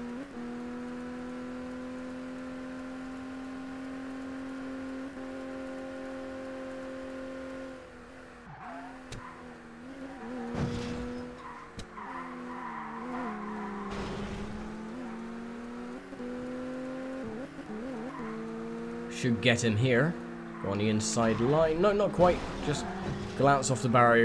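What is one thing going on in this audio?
A car engine drones steadily, its pitch rising and falling with gear changes.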